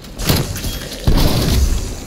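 An explosion bangs with a short roar.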